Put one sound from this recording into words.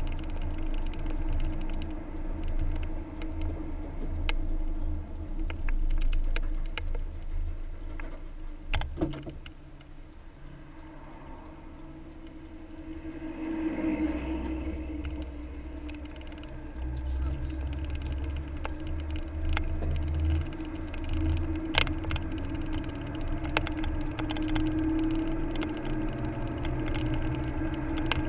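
Engine and road noise rumble steadily from inside a moving car.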